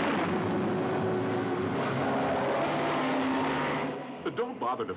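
Speedboat engines roar over the water.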